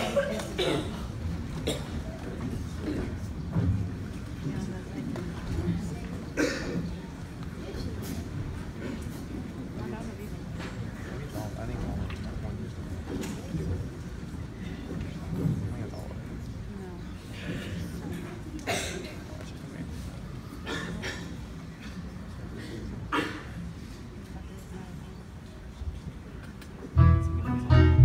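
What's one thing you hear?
A group of people murmurs quietly in a large hall.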